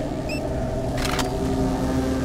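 A short electronic swish sounds as a handheld device closes.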